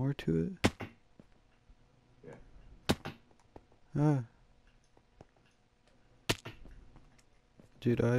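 Sand blocks break with short crunching sounds.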